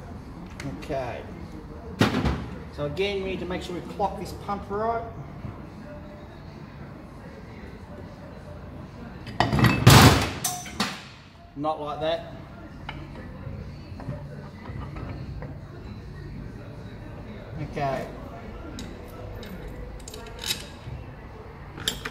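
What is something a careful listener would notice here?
Metal engine parts clink and knock on a bench.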